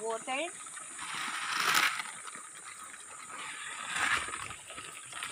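Feed rustles as it pours from a bucket onto the ground.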